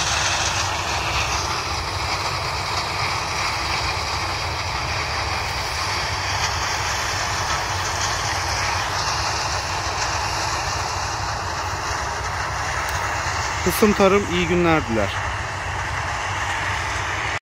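A combine harvester drones far off as it harvests corn.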